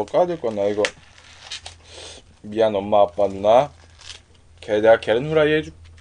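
A plastic wrapper crinkles as a young man unwraps food.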